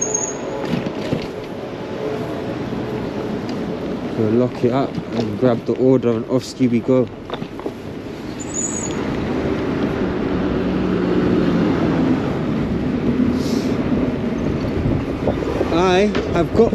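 Bicycle tyres roll and rattle over paving stones.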